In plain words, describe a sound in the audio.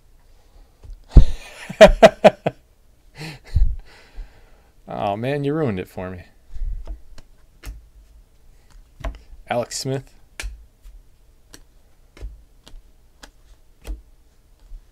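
Trading cards rustle and click as hands shuffle through a stack.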